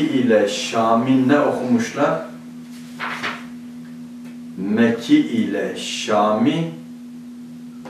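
A middle-aged man reads aloud calmly and close to a microphone.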